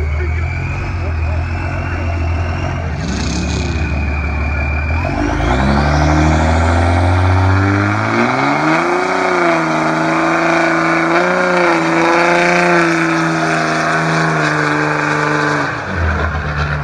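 A truck engine revs hard and roars.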